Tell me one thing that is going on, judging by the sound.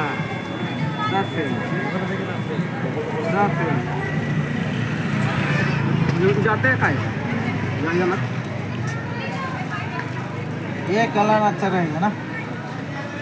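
Men talk and call out close by, outdoors on a busy street.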